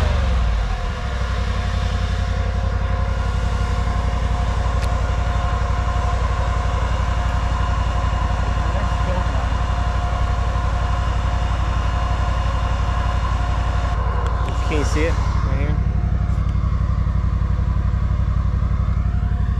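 An engine idles with a steady, low rumble close by.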